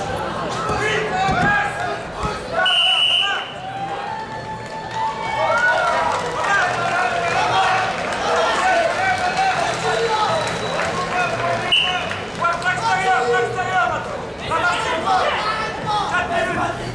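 A crowd in a large indoor arena shouts and cheers.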